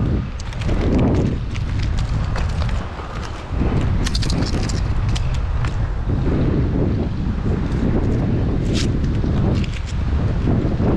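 Pine branches rustle and crackle as they are pushed aside.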